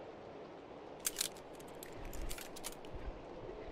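A pistol is reloaded with sharp metallic clicks.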